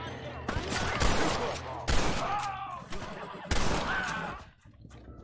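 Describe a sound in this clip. Gunshots crack loudly, one after another.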